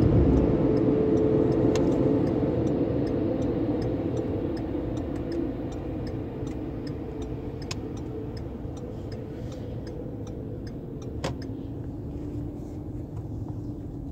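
A car engine hums and road noise rumbles inside the car, slowly easing as the car slows.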